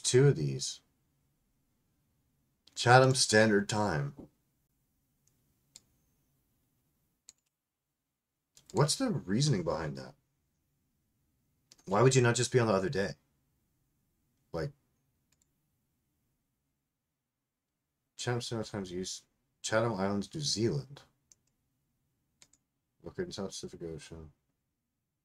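A middle-aged man talks calmly into a close microphone, in short phrases with pauses.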